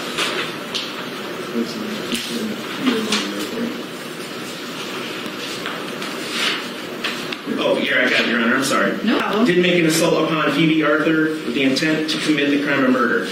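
A man speaks quietly nearby in a room that echoes a little.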